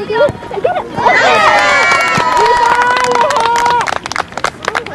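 A group of children cheers loudly.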